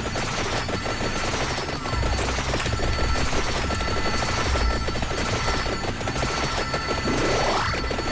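Rapid video game hit and zap sound effects patter constantly.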